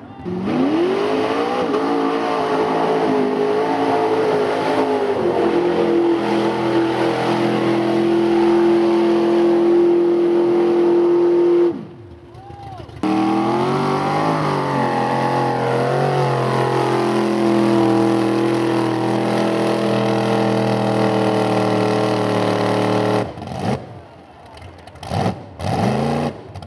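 A truck engine roars loudly at high revs.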